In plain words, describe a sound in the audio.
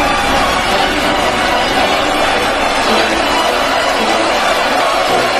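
Loud rock music plays through a powerful sound system.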